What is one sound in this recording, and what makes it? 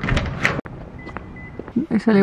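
A car's key fob beeps as the car locks.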